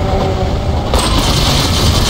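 A heavy gun fires repeated loud shots.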